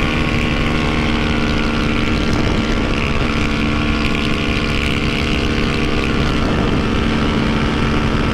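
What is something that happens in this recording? A motorcycle engine drones steadily at high speed, close by.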